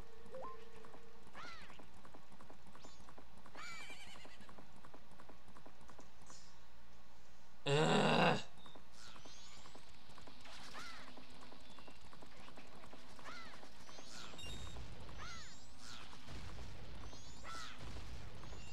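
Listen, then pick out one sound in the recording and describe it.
Horse hooves gallop steadily.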